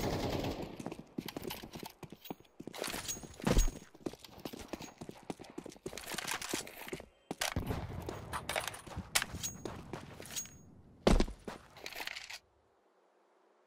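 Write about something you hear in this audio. Footsteps run on stone paving.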